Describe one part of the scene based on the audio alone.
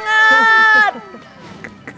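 A woman squeals with delight close by.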